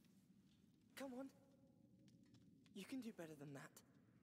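A young woman speaks in an encouraging tone.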